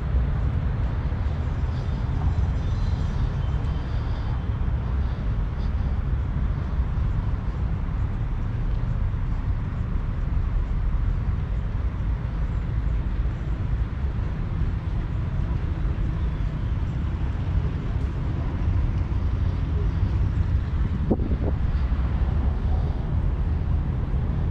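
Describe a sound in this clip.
Wind buffets the microphone outdoors with a steady low rumble.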